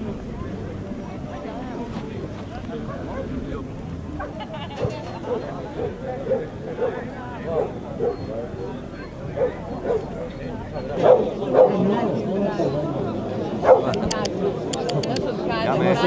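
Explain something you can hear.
People chatter outdoors in the distance.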